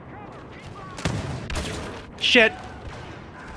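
Laser guns fire in short bursts.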